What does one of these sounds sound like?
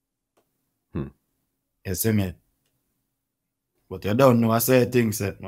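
A man speaks in short bursts, close to a microphone.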